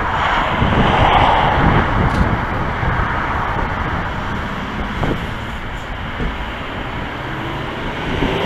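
A car's engine hums as it drives slowly along.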